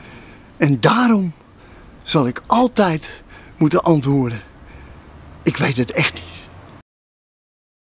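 An older man speaks with animation, close to a microphone, in short bursts.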